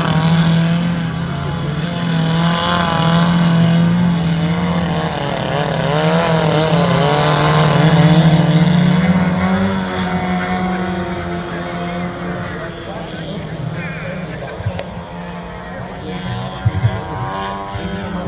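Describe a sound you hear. Small model plane engines buzz loudly, rising and falling in pitch as the planes swoop overhead.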